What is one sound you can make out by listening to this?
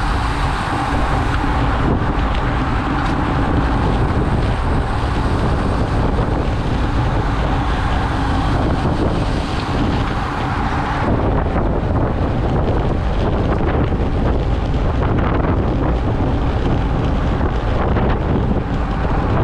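Strong wind roars loudly and steadily outdoors.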